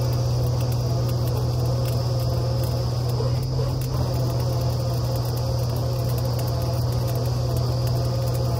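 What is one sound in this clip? A drilling rig's engine drones loudly and steadily outdoors.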